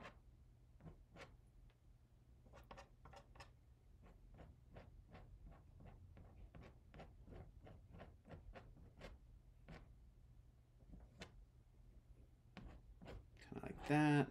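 A palette knife taps and scrapes on canvas in short strokes.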